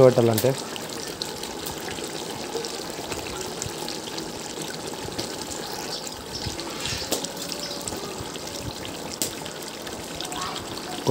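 A pot of curry bubbles and simmers.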